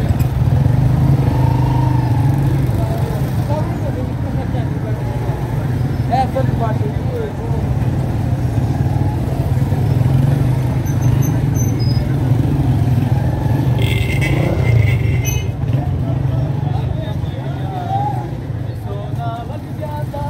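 A crowd of men and women chatters all around in a busy street.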